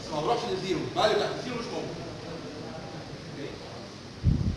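A middle-aged man speaks nearby in a lecturing tone, in a room with some echo.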